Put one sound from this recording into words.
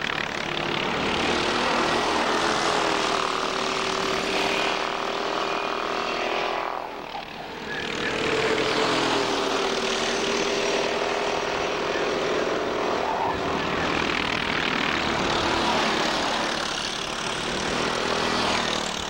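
Small kart engines buzz and whine loudly as karts race past, rising and falling in pitch.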